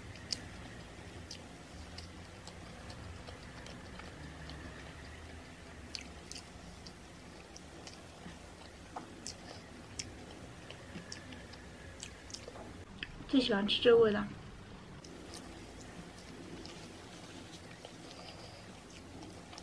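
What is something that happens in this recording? A young woman chews food with soft, wet smacking sounds close to a microphone.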